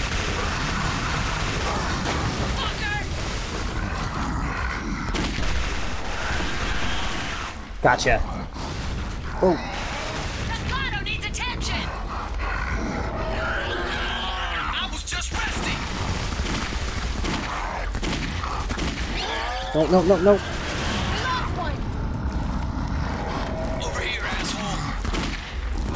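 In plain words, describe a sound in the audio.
Guns fire in bursts of loud shots.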